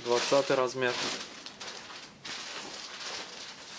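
Hands rustle and smooth a padded jacket's fabric.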